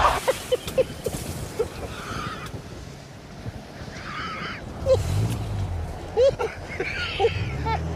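A man laughs loudly and hysterically close by.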